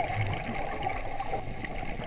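Air bubbles gurgle and rise from a diver's regulator.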